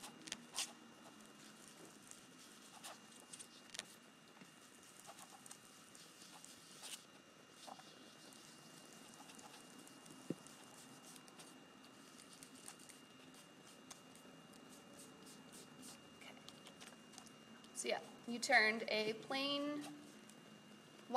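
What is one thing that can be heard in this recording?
A foam ink tool dabs and pats softly on a card.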